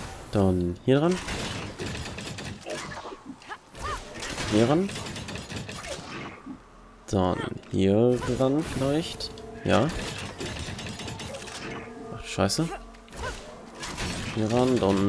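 Hands and boots clatter on a metal ladder during a climb.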